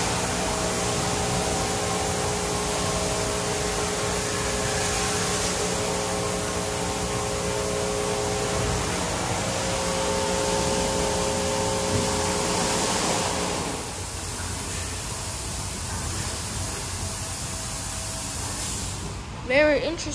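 Water sprays and splashes onto a car.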